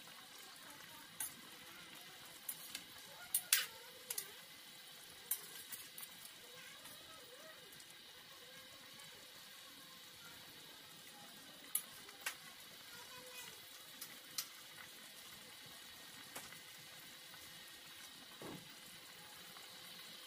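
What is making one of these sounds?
A ladle stirs thick stew in a pot.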